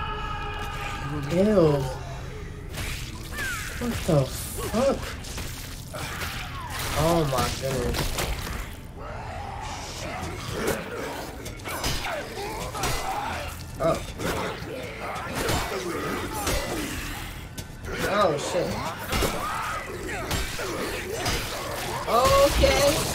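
A young woman talks and reacts with animation, close to a microphone.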